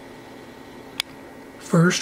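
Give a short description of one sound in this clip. A button clicks once.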